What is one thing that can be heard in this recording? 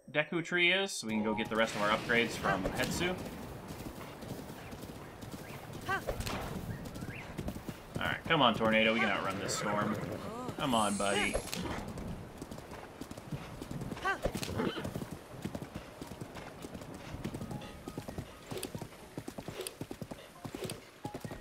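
A horse gallops with steady hoofbeats on soft ground.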